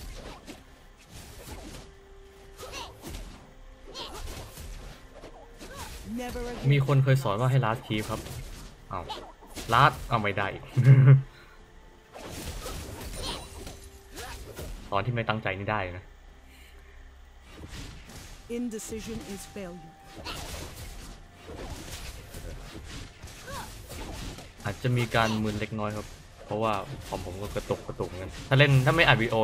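Fantasy battle sound effects clash and whoosh in quick bursts.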